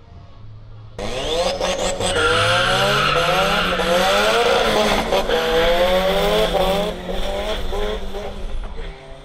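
A small car engine revs high and roars as it races past.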